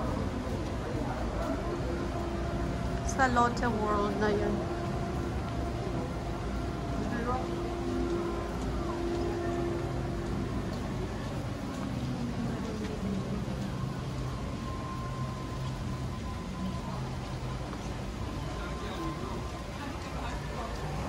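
Footsteps walk on pavement.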